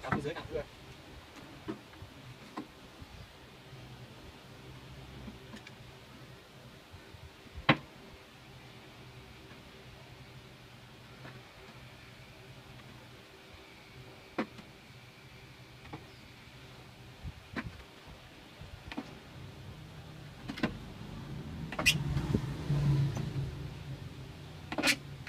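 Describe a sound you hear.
A plastic jar clicks and knocks as hands handle it.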